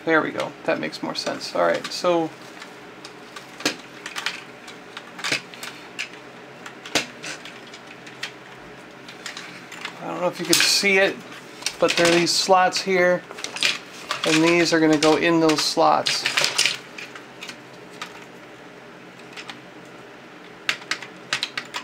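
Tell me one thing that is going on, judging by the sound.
Plastic toy parts click and snap as hands handle them.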